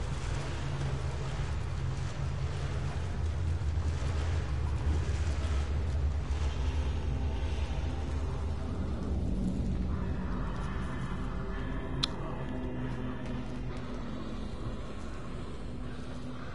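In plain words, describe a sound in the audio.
Footsteps scuff slowly on a hard floor.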